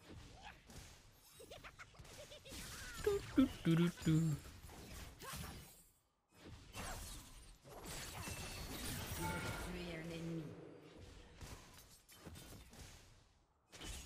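Game spell effects whoosh and clash in quick bursts.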